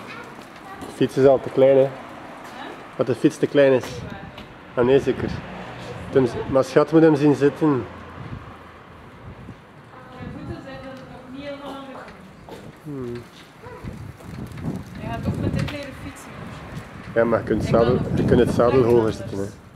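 A young boy talks nearby.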